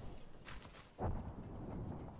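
A heavy thud sounds as a game character lands on grass.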